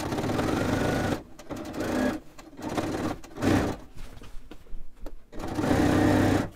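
A sewing machine whirs as it stitches fabric.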